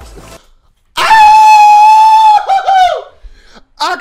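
A young man lets out a long, loud shout into a close microphone.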